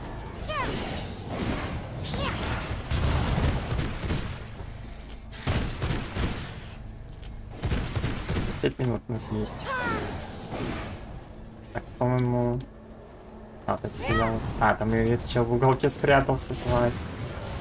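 Magic spells burst and crackle in a game fight.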